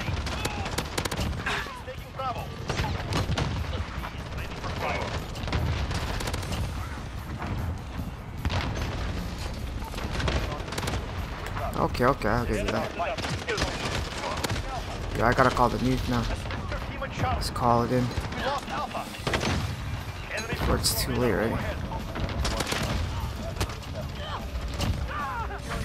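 Game gunfire rattles in bursts.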